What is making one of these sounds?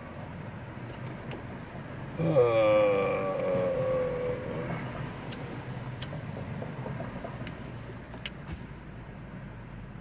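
Cars drive past one after another outside.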